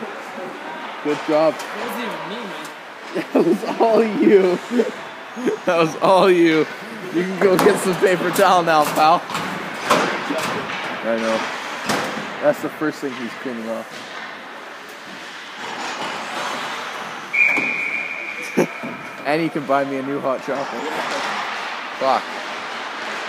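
Players shout across a large echoing ice rink.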